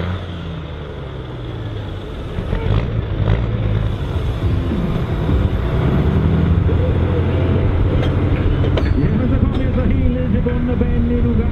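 A heavy truck engine rumbles loudly and revs up close by.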